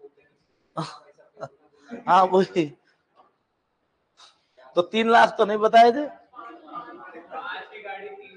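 A middle-aged man laughs softly.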